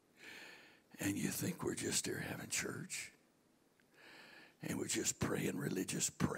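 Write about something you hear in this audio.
A middle-aged man speaks through a microphone over loudspeakers in an echoing hall, pausing between phrases.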